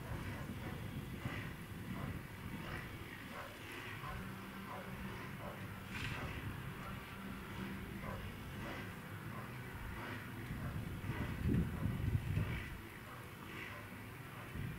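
Dry brushwood rustles and crackles as it is handled.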